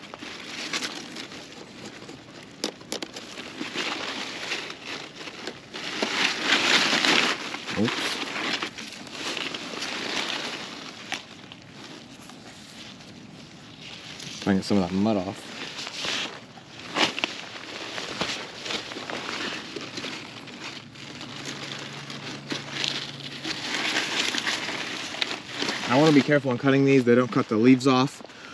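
Leaves and stems rustle as hands push through plants.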